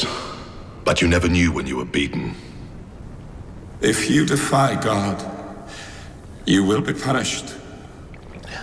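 A man speaks calmly and coldly, close by.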